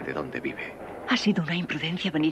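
A woman speaks softly up close.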